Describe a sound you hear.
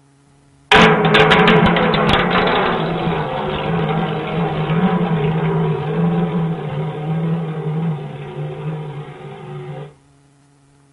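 Small metal shells clatter and ring as they fall and roll.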